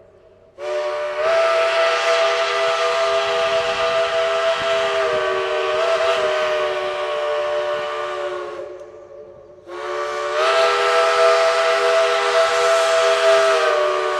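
A steam locomotive chugs heavily in the distance.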